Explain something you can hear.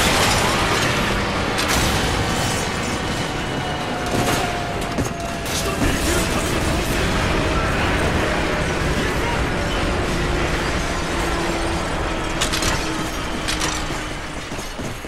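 Gunfire and explosions crackle and boom.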